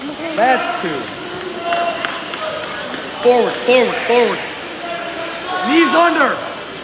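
Spectators shout encouragement loudly in a large echoing hall.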